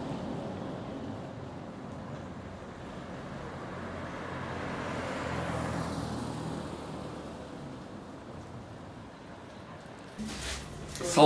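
Traffic hums along a street outdoors.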